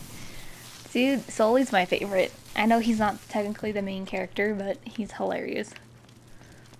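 A young woman speaks with animation, close to a microphone.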